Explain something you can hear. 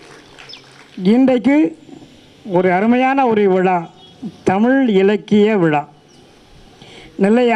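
A middle-aged man sings loudly through a microphone in long, drawn-out phrases.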